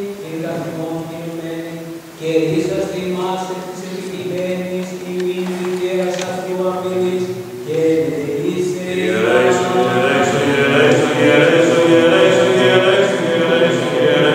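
A choir of men chants slowly together in a large echoing hall.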